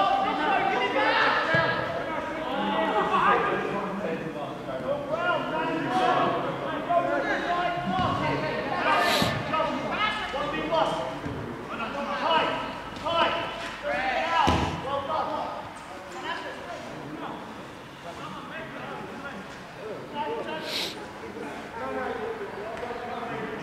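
Young men shout and call out to each other across an open pitch.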